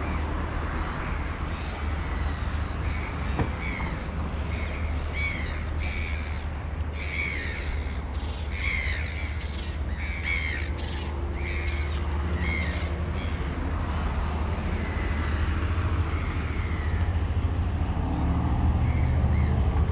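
Footsteps tap steadily on a pavement outdoors.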